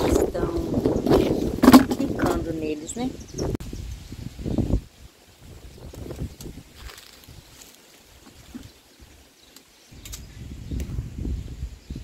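Fruit thuds into a plastic bucket.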